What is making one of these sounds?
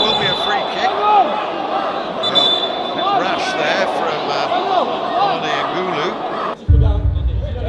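Men shout and call out from a distance.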